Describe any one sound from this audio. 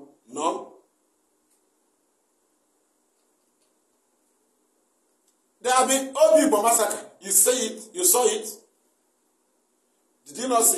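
A man speaks with animation close to a microphone, in short bursts with long pauses.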